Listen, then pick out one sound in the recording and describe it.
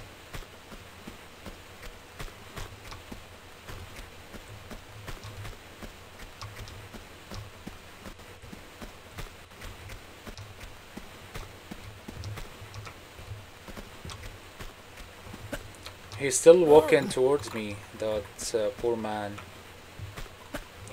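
Footsteps patter quickly on gravel.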